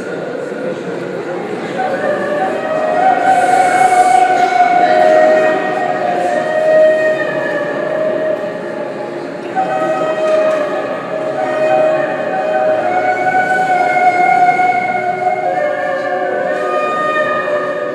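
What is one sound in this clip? A woman sings a slow, drawn-out song over loudspeakers in a large hall.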